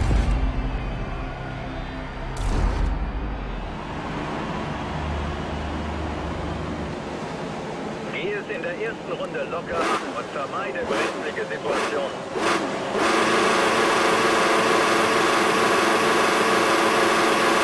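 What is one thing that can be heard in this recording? Racing car engines idle and rev loudly.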